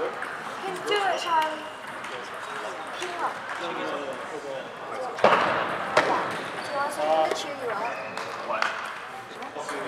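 Table tennis balls click against paddles and tables in a large echoing hall.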